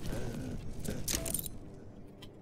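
A short menu chime sounds.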